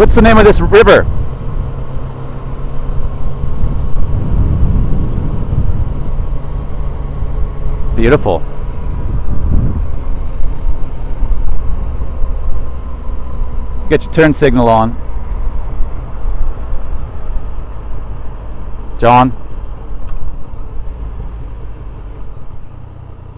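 A motorcycle engine rumbles steadily at speed.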